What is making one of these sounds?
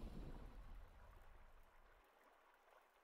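A game's deep victory chime booms and slowly fades.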